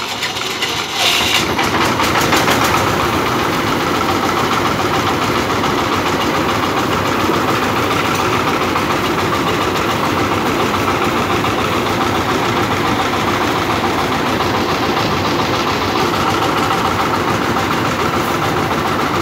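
A threshing drum whirs and rattles.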